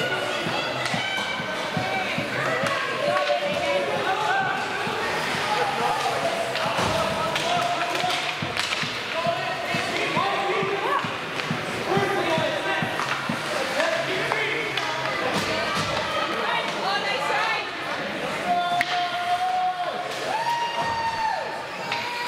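Spectators chatter and call out in a large echoing arena.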